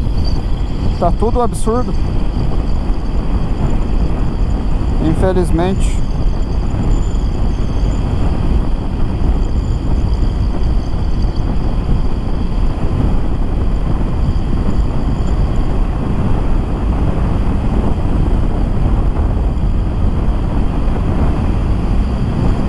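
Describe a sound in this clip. A motorcycle engine hums steadily beneath the wind.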